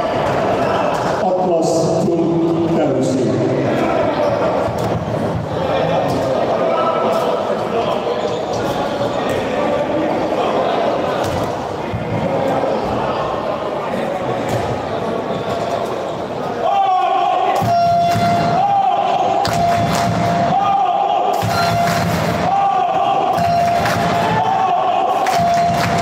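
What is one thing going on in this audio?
Sport shoes squeak on a hard floor.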